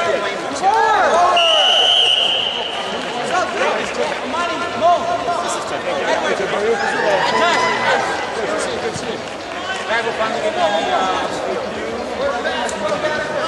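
A crowd of men and women shouts and calls out nearby.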